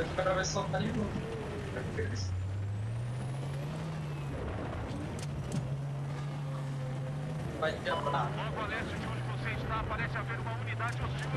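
A heavy engine hums steadily, its pitch shifting up and down.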